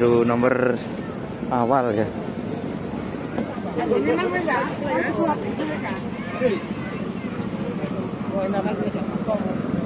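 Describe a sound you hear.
A crowd of men and women chatter loudly nearby outdoors.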